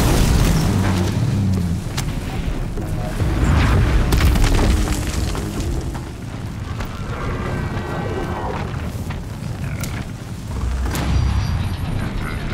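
Explosions boom in heavy bursts.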